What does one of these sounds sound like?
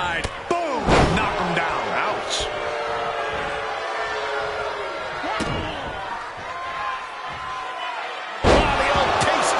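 A body slams onto a wrestling mat with a heavy thud.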